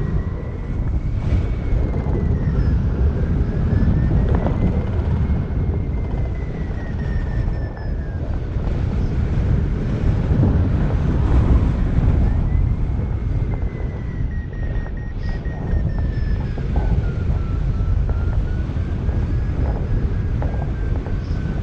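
Wind rushes loudly and steadily past a hang glider in flight.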